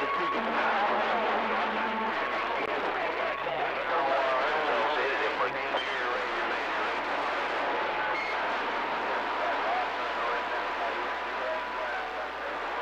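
Static hisses and crackles steadily from a radio receiver.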